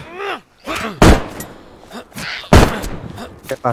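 Heavy blows land with sharp thuds.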